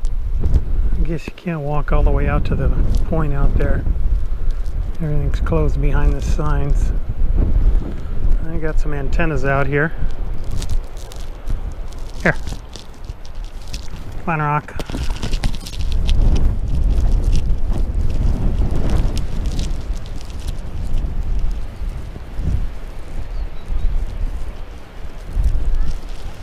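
Wind blows hard across open ground, rumbling low and gusting.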